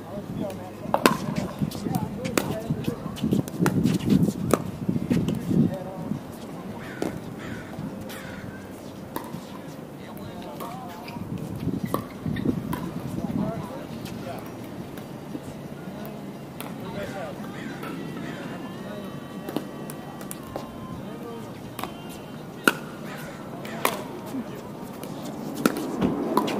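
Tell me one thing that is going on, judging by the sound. Paddles sharply pop against a plastic ball.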